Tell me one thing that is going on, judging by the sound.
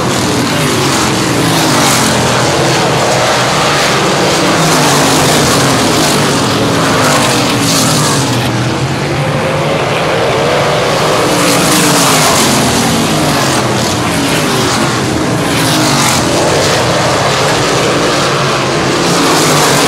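Race car engines roar loudly, revving up and down as the cars speed past.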